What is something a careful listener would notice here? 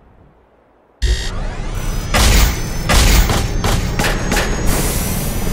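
Heavy metal clamps clank shut.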